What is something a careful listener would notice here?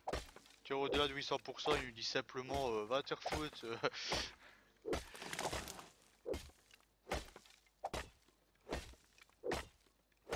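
An axe chops wood in steady, repeated blows.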